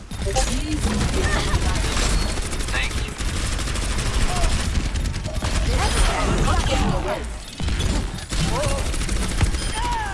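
A rapid-fire energy weapon blasts continuously with loud buzzing bursts.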